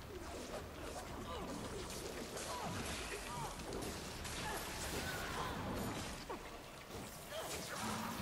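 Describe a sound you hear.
A large monster roars and growls.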